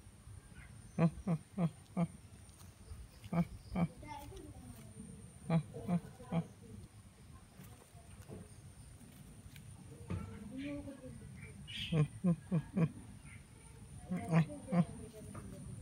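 Young parrot chicks squawk in short, harsh bursts close by.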